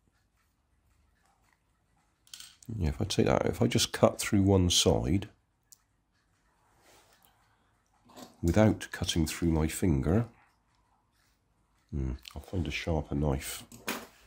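Small plastic parts click and rustle as they are handled close by.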